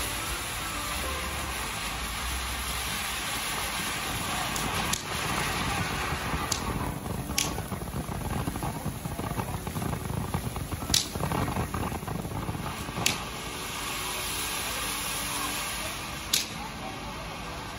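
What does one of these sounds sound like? A firework fountain hisses and crackles steadily outdoors.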